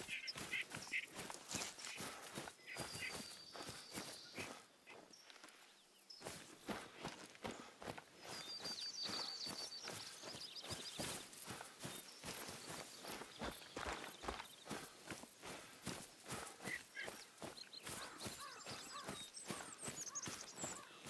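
Footsteps swish and crunch through grass and brush at a steady walking pace.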